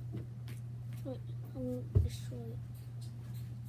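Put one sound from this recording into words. A young boy speaks briefly and softly near the microphone.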